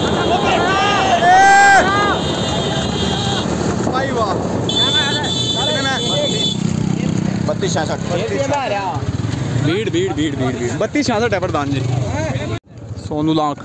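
A motorcycle engine runs close by.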